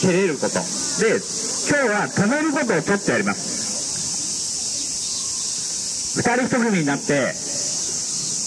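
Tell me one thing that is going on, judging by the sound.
A man speaks loudly and with animation to a crowd outdoors.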